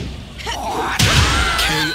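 A flaming blast bursts with a roaring whoosh.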